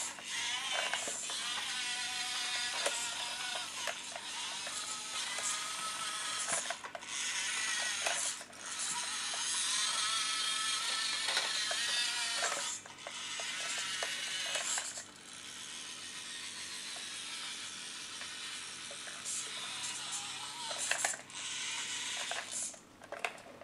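A toy tractor's electric motor whines as it drives back and forth, rising and falling in pitch.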